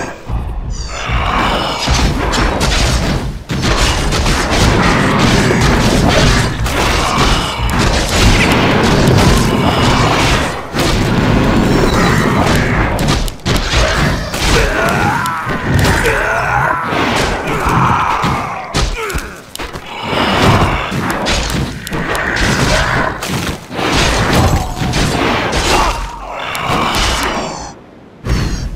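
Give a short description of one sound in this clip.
Magic spells whoosh and burst.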